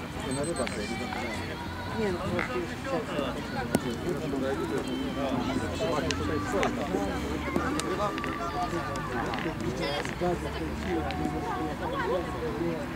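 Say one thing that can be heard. Men talk casually outdoors at a distance.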